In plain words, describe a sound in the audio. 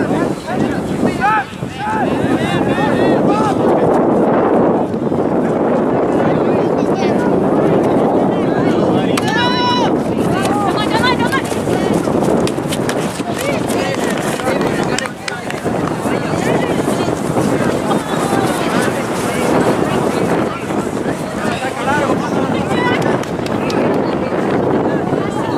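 A crowd of adult spectators chatters and calls out close by, outdoors.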